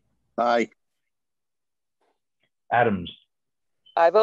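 A middle-aged man speaks a few short words over an online call.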